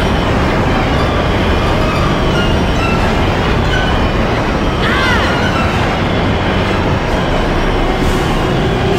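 A racing engine roars loudly and steadily at high speed.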